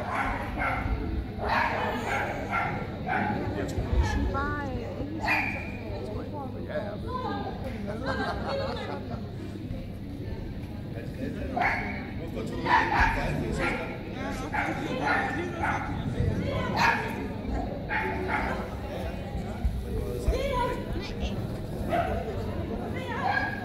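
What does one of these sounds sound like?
Voices of a crowd murmur and call out in a large echoing hall.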